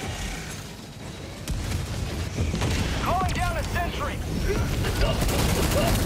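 A large creature roars and screeches close by.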